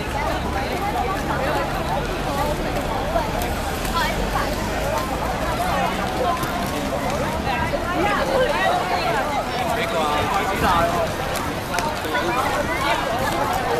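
Roller skate wheels roll and scrape on a hard court.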